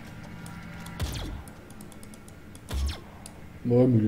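Gunshots boom from a video game.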